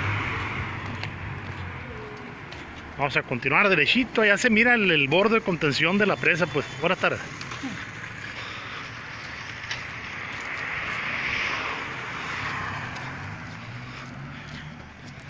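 Traffic hums along a nearby road.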